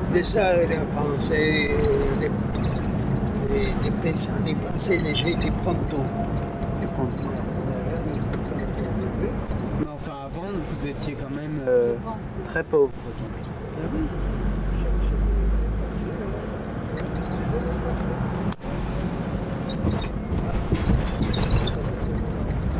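A car engine rumbles steadily with road noise.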